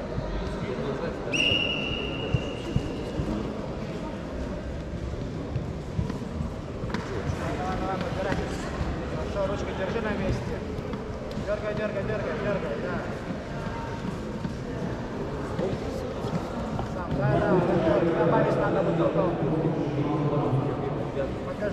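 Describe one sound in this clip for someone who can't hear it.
Adult men and women chatter and call out from a distance in a large echoing hall.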